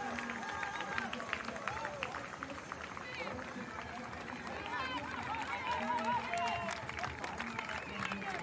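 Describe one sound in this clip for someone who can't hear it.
Spectators clap their hands rapidly.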